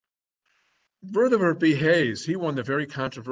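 An elderly man speaks calmly through an online call microphone.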